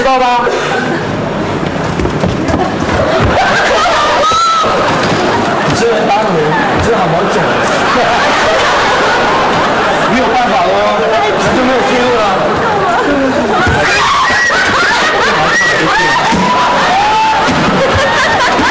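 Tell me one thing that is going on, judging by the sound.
An audience laughs and cheers in a large room.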